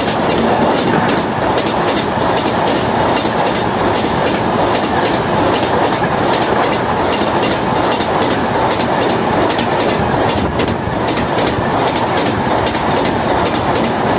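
A passenger train rushes past close by with a loud, steady roar.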